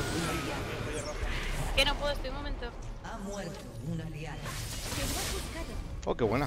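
Magic blasts and clashing fight sounds from a video game play throughout.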